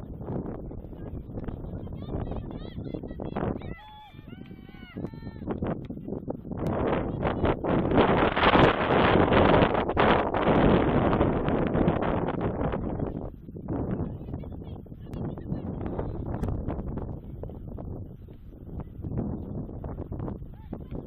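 Young women players call out to one another across an open outdoor field, far off.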